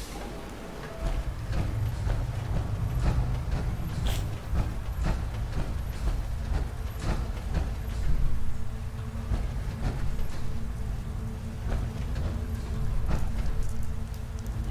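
Heavy armoured footsteps clank and thud at a steady pace.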